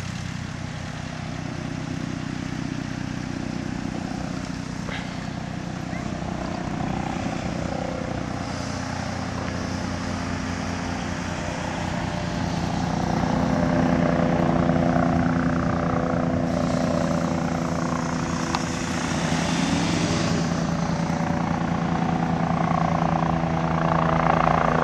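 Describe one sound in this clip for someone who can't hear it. A helicopter's rotor thumps steadily overhead, growing louder as it approaches.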